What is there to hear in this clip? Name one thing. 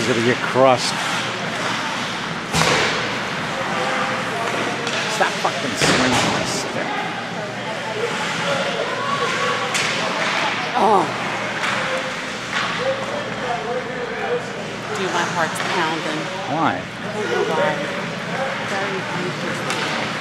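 Spectators nearby talk and shout in a large echoing rink.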